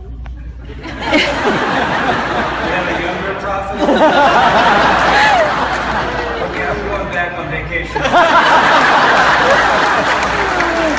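An older man speaks calmly through a microphone in a large echoing hall.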